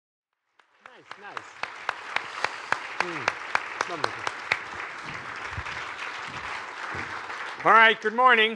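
An audience claps and cheers in a large room.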